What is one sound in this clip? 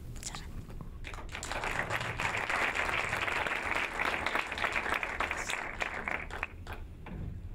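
An audience applauds in a hall.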